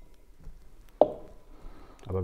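A glass knocks against a hard counter.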